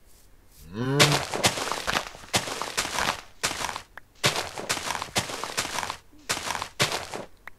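Dirt crunches as it is dug away with a shovel.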